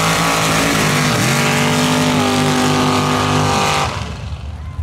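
A pickup truck engine roars at full throttle as it races through mud.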